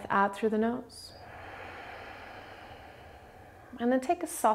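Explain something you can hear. A young woman breathes out slowly and audibly.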